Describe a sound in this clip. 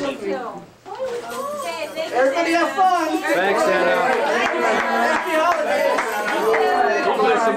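Children chatter and call out excitedly.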